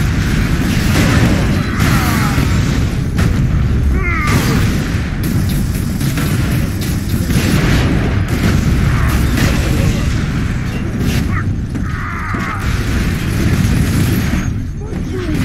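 Jetpack thrusters roar steadily.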